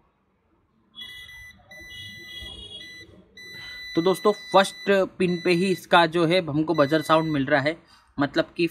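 A multimeter beeps with short, steady high tones.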